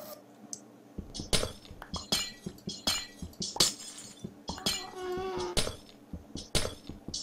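Blocks crunch and break in quick repeated taps as they are mined.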